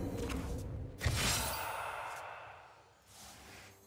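A magical blast booms and slowly fades.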